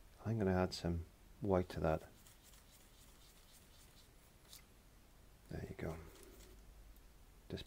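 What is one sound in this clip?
A paintbrush dabs and swishes softly in wet paint.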